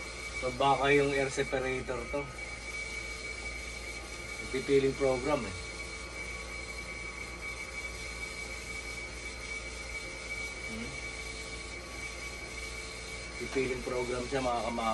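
An adult man talks calmly close by.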